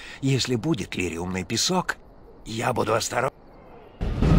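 An elderly man speaks.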